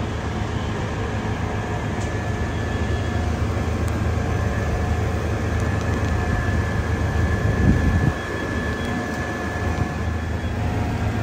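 A fire truck engine idles with a steady low rumble nearby.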